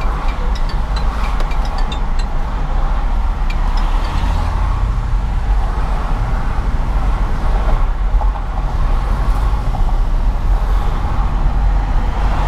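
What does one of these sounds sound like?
A car's engine and tyres rumble steadily on a highway.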